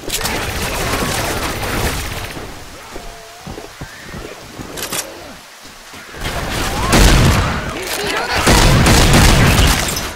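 Shotgun blasts go off in rapid bursts.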